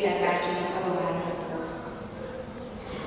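A woman speaks calmly into a microphone over a loudspeaker in a large echoing hall.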